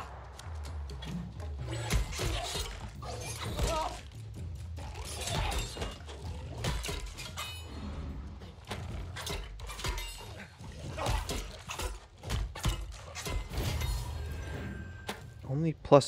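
Magic spells crackle and whoosh during a fight.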